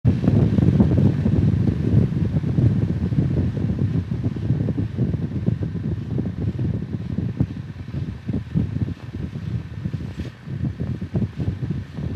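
Wind buffets loudly against a microphone on a moving motorcycle.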